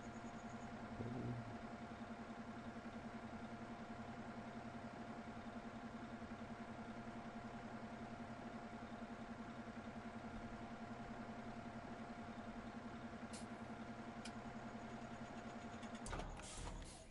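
A tractor engine idles with a steady drone.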